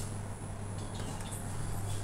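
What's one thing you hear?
A finger clicks a lift button.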